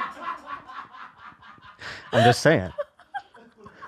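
A woman laughs loudly into a close microphone.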